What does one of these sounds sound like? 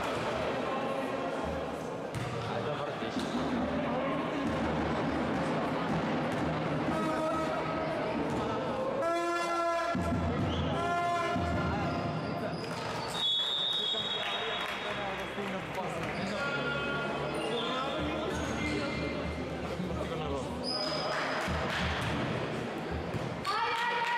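Spectators murmur and call out in an echoing hall.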